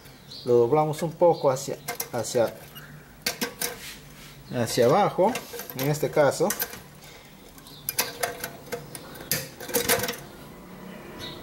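Metal parts click and scrape as a nut is turned by hand.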